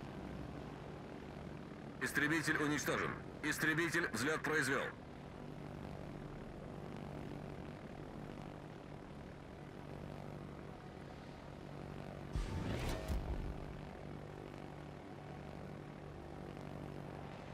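Aircraft engines drone steadily overhead.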